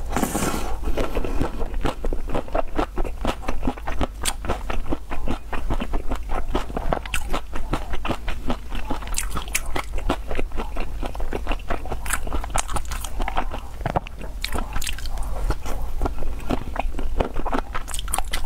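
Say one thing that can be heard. A young woman chews food wetly and noisily close to a microphone.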